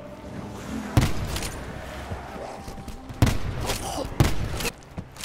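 A gun fires single loud shots, each ringing briefly.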